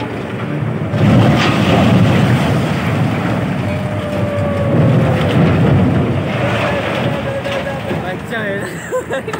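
A huge steel structure collapses with a deep, rumbling crash that slowly fades out.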